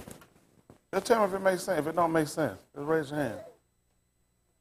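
A man speaks clearly and with emphasis, heard through a microphone.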